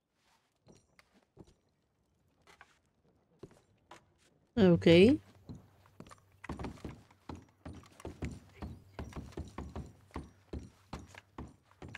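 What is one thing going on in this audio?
Boots thud on a wooden floor.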